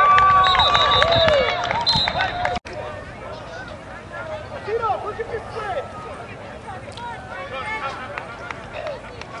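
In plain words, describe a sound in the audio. A crowd of spectators chatters and calls out outdoors at a distance.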